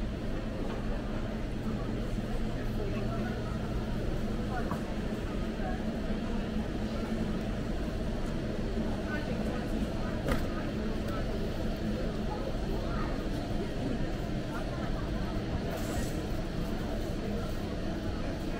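A crowd of shoppers murmurs in a large, echoing hall.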